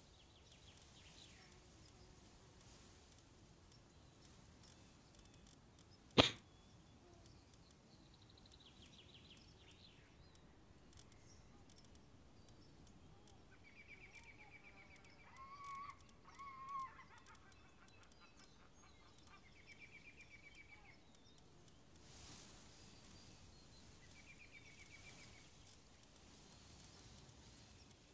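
Soft menu clicks and chimes sound repeatedly.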